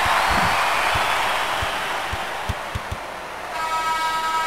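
A crowd cheers loudly, then fades.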